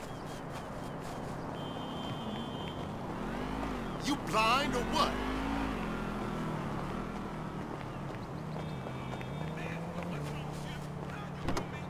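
Footsteps tap on a paved path.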